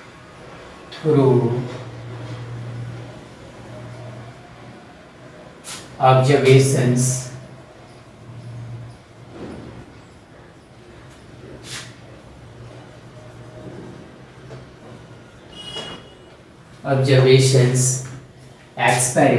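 A young man speaks in bursts, explaining nearby.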